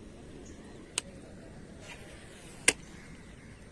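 A fishing reel clicks.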